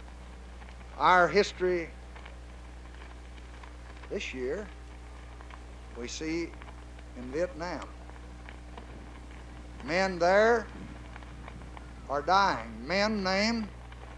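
A man speaks calmly in short phrases nearby.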